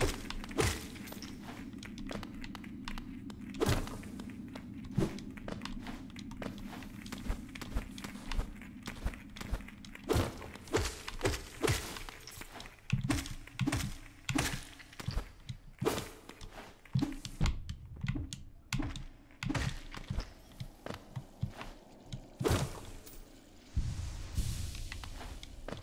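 Sharp slashing and thudding hits come from a video game.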